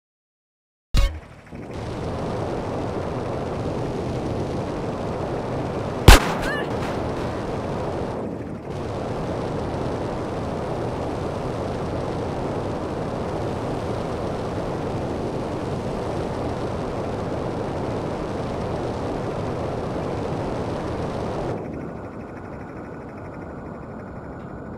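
A jetpack roars steadily.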